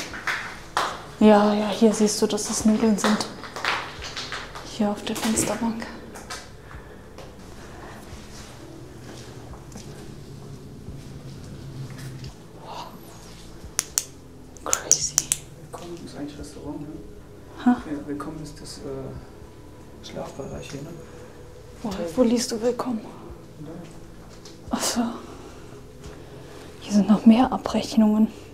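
A young man talks close to a clip-on microphone, casually and in short bursts.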